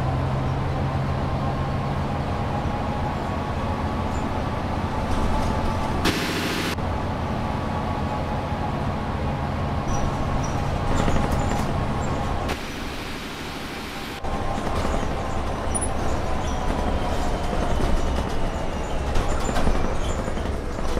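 A bus engine hums steadily and whines as the bus drives along.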